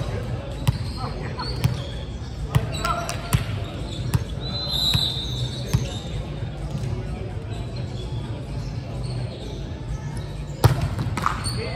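A volleyball thuds as players hit it, echoing in a large hall.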